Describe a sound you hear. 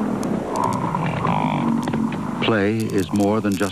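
Hooves thud on the ground as a bison calf runs.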